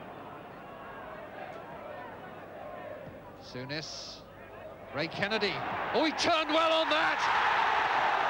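A large stadium crowd murmurs in the distance.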